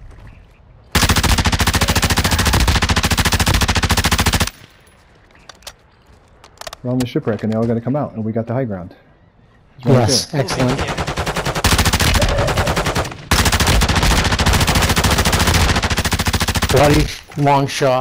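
A rifle fires in long, rapid automatic bursts.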